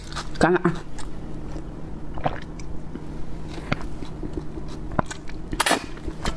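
A woman slurps noodles loudly close to a microphone.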